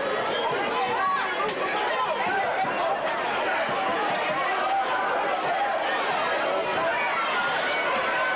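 A crowd cheers and chatters loudly in a large echoing gym.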